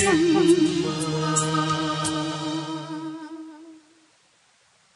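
A man and women sing together through microphones.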